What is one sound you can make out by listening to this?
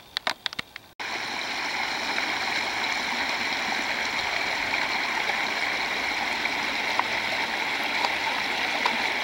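Water trickles and gurgles steadily in a shallow stream.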